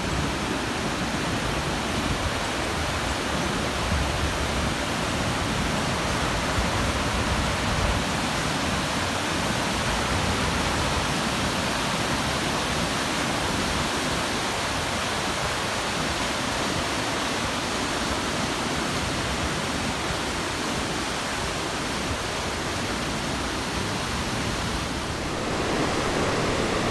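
A mountain stream rushes loudly over rocks, outdoors.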